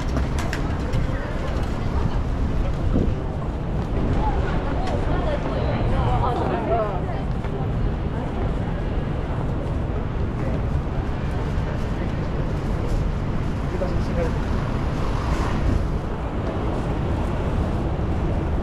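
Footsteps tap on pavement as people walk along an outdoor street.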